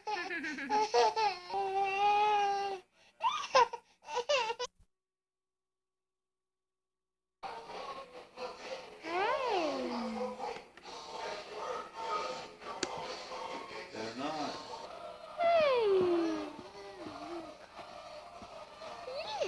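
A baby squeals and babbles loudly up close.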